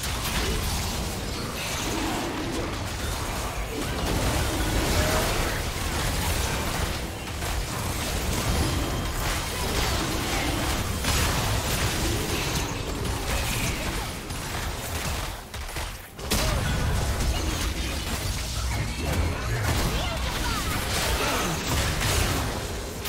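Spells and attacks blast and crackle in a fast game battle.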